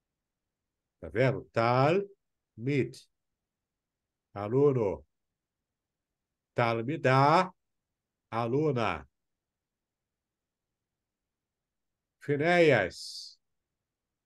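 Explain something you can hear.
A man speaks calmly into a microphone in short phrases, heard as in an online call.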